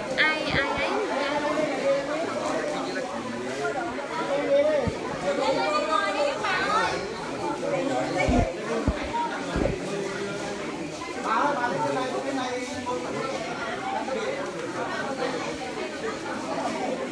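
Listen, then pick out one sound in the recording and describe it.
A crowd of mostly elderly men and women talk over one another close by.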